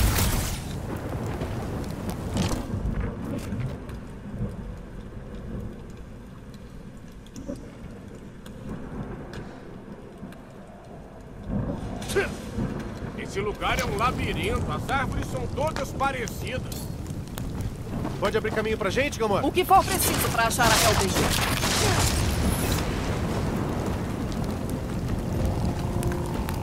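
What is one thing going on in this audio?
Flames crackle and hiss nearby.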